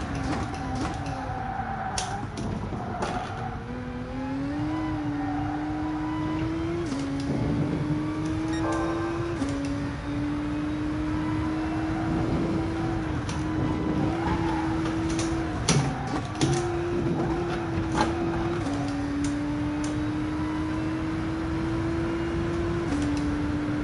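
A racing car engine roars steadily, its pitch climbing and dropping sharply with each gear change.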